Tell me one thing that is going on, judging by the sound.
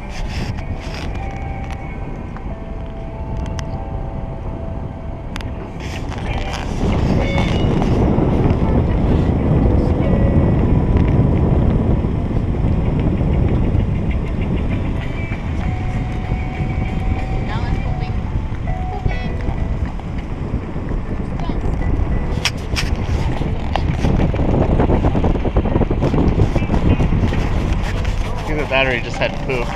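A car engine hums steadily while driving slowly.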